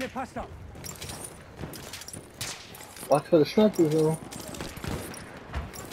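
Gunshots crack in the distance.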